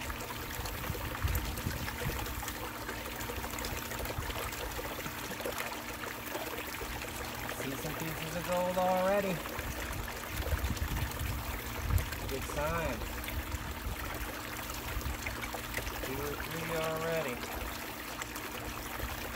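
Water splashes and gurgles steadily as it pours down a channel.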